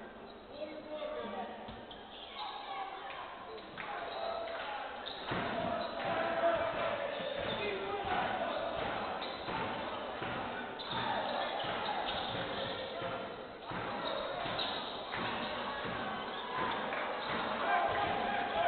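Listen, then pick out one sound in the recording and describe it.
A basketball bounces on a wooden court.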